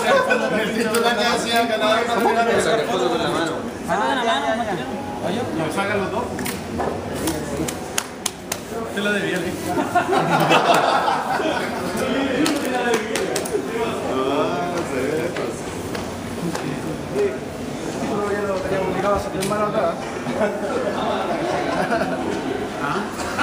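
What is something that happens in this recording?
A crowd of men talk and cheer loudly close by, in an echoing room.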